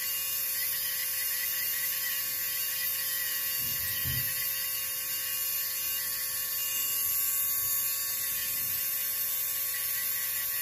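An electric nail drill whines steadily while grinding a toenail.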